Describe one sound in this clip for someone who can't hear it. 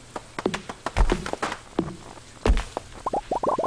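An axe chops wood in quick, sharp strikes.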